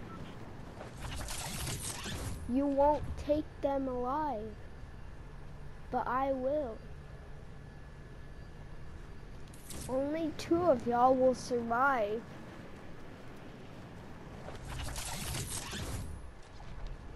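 A glider snaps open with a loud rushing whoosh.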